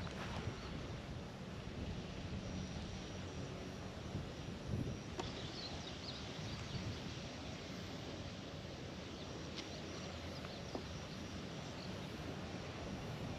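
Wind blows steadily outdoors, rustling leaves.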